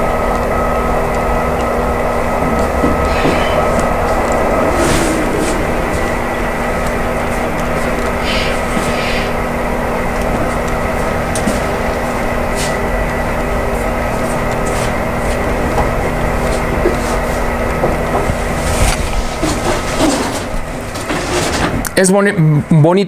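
A model train hums and rumbles steadily along its tracks.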